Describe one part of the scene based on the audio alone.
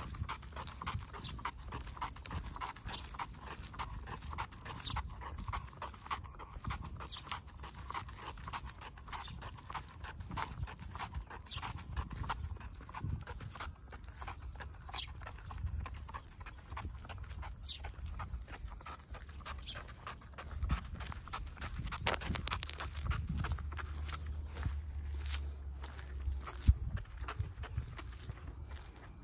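Footsteps of a person walking scuff on pavement.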